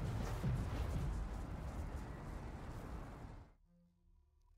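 A rushing, swirling whoosh fades out.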